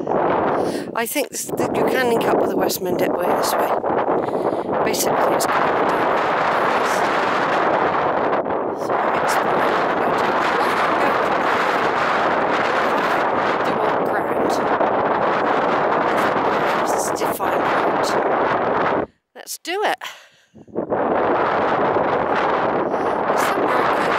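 Strong wind roars and buffets outdoors, dropping briefly to near silence.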